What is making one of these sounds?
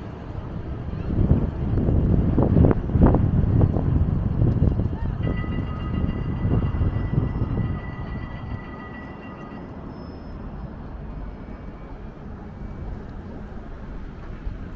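Traffic rumbles past on a city street outdoors.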